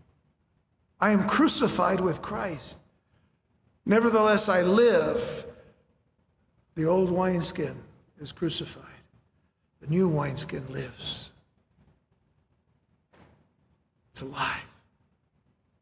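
A middle-aged man speaks with emphasis through a microphone, in bursts with pauses.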